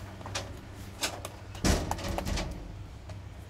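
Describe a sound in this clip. Plastic parts knock on a hard table.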